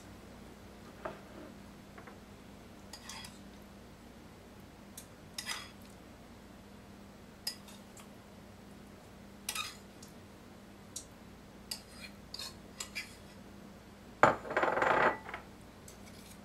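A knife scrapes and taps on a board.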